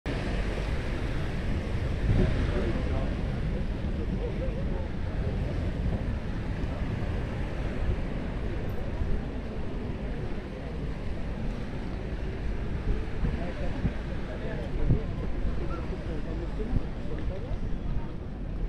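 A crowd of people chatters on a busy beach outdoors.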